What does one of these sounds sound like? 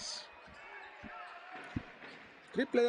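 A basketball bounces on the court with dull thuds.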